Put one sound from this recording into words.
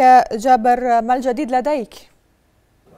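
A woman speaks calmly and clearly through a microphone.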